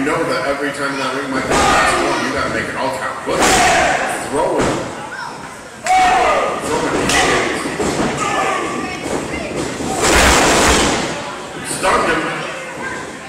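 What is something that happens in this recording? A crowd cheers and shouts in a large echoing hall.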